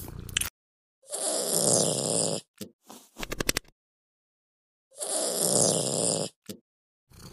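A cat yowls loudly.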